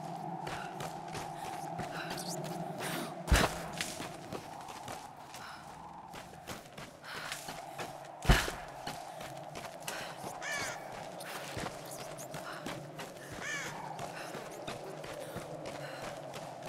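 Footsteps run quickly over wet ground and gravel.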